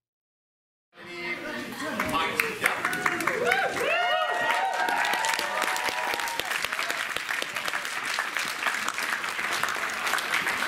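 A crowd claps loudly in a large hall.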